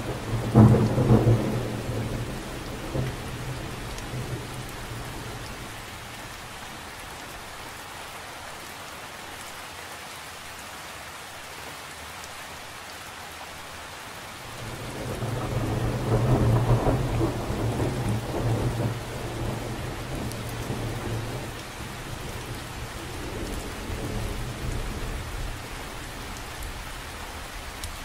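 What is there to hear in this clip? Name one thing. Rain patters steadily on the surface of a lake.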